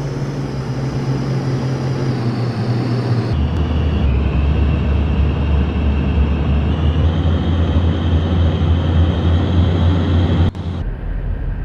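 A bus engine drones steadily, its pitch rising as it speeds up.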